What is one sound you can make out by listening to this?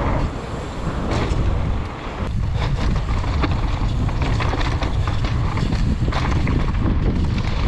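Wind roars loudly across a microphone outdoors.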